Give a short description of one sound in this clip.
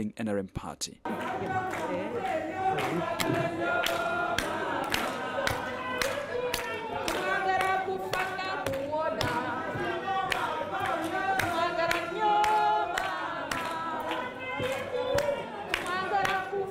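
People clap their hands in a steady rhythm.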